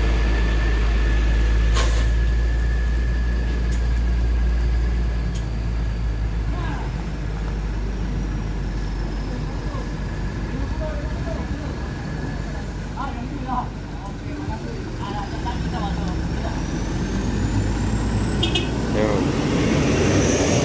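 A truck engine idles and rumbles nearby.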